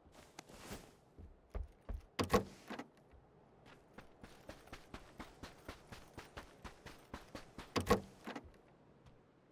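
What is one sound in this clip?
Footsteps tread quickly on wooden floors and dirt.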